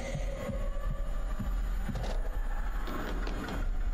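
A body falls and thuds onto a wooden floor.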